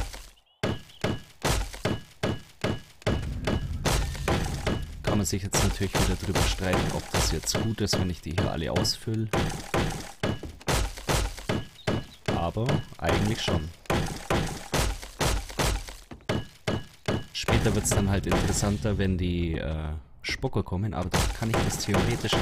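A hammer knocks repeatedly on wooden beams.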